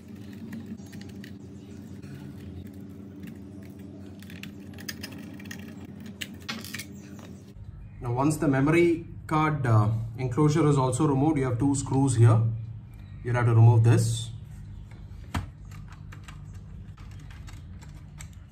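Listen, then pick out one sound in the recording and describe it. A screwdriver creaks as it turns small screws in metal.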